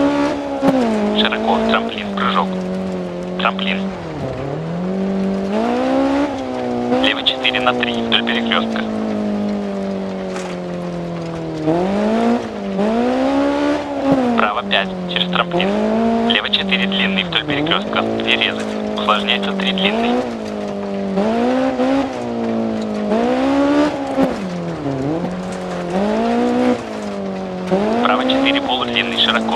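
Gravel crackles and sprays under skidding tyres.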